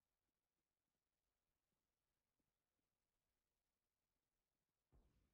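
Footsteps tread softly and steadily on hard ground.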